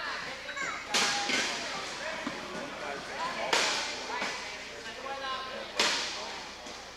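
Wheelchairs crash and bang into each other in a large echoing hall.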